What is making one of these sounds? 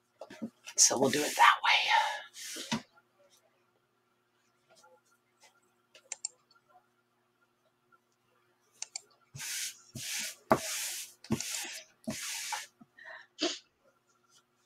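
Cloth rustles and crinkles.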